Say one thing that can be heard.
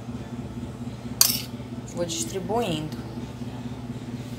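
A spoon clinks against a glass bowl.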